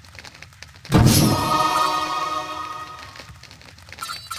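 A bright ringing chime rises and fades as a skill is chosen.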